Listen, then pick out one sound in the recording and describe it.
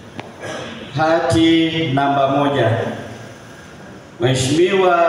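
A man chants loudly through a microphone in an echoing hall.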